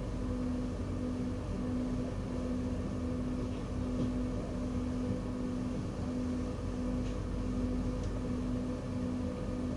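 A train's engine hums steadily while idling, with a low drone that pulses gently.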